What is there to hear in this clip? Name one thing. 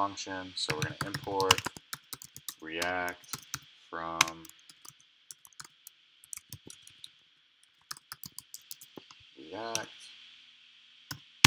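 Keys on a computer keyboard click in quick bursts of typing.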